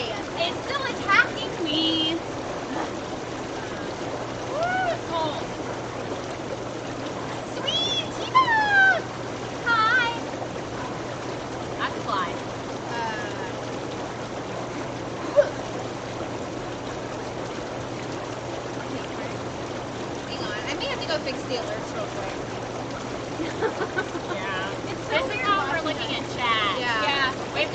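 Water bubbles and churns steadily in a hot tub.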